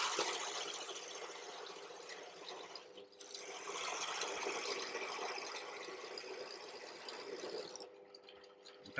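A drill press whirs as it bores into wood.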